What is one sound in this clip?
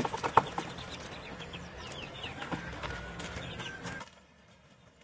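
Hands scrape and scatter loose soil close by.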